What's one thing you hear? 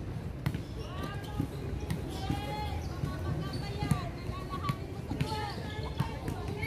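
Women players shout to each other across a court.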